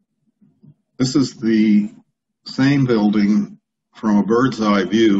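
An older man talks calmly through an online call microphone.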